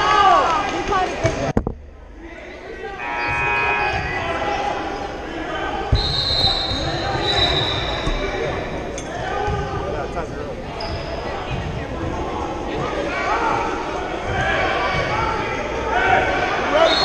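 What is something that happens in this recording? Sneakers squeak on a wooden court in a large echoing hall.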